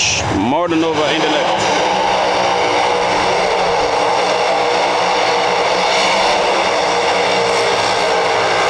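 A race car engine roars loudly during a burnout.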